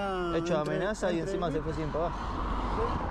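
A man speaks agitatedly close by.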